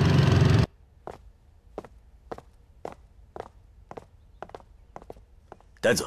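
Hard shoes step on a wooden floor.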